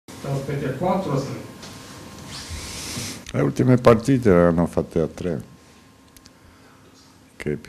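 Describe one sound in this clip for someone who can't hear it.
An elderly man speaks calmly into microphones.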